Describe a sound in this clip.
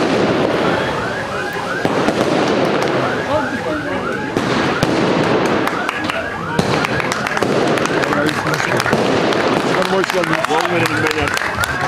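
Fireworks crackle and pop nearby.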